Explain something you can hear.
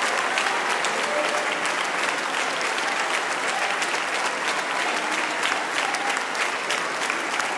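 A large audience applauds loudly in a big hall.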